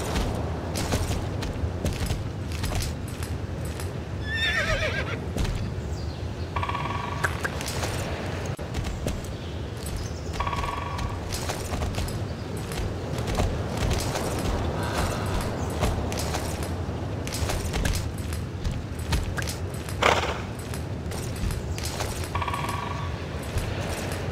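A horse gallops with quick, steady hoofbeats.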